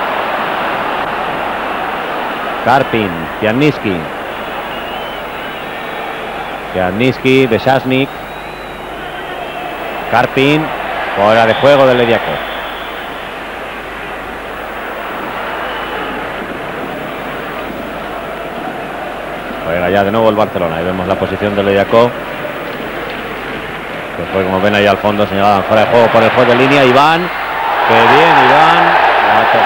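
A large crowd murmurs and roars steadily in an open stadium.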